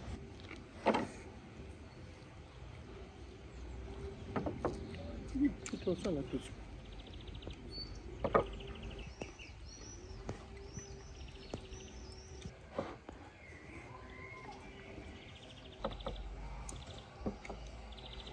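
Dishes and cups clink on a wooden table.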